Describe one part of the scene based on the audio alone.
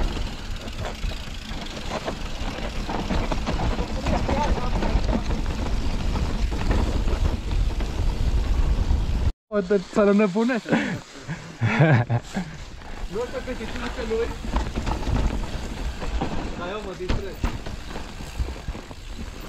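Wind rumbles loudly past a moving bicycle.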